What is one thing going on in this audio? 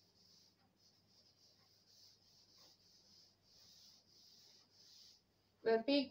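A duster rubs back and forth across a chalkboard.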